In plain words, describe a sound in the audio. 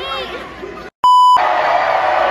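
A steady electronic beep sounds briefly.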